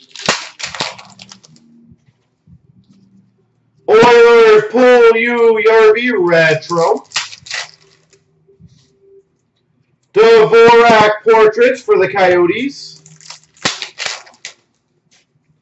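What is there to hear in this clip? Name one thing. Trading cards rustle and click as hands flip through them.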